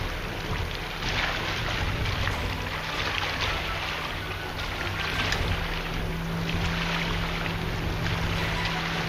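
A river flows and ripples steadily outdoors.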